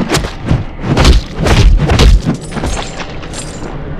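Weapons strike and thud in a fast fight.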